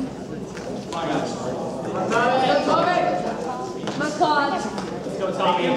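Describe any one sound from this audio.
Spectators shout encouragement loudly.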